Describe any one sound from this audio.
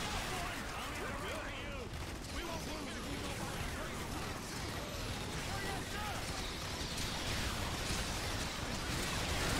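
Laser weapons fire in rapid bursts.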